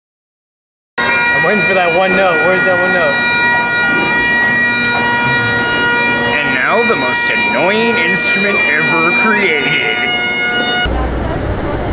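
A bagpipe plays a steady droning tune.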